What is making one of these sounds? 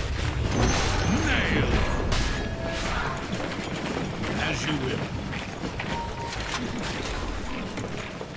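Game battle effects clash and crackle.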